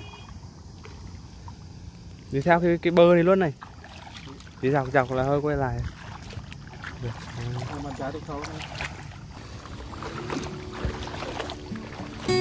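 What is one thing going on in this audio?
Feet splash through shallow water.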